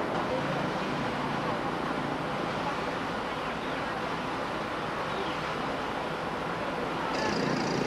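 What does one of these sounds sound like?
Footsteps shuffle on a path as a group of people walks.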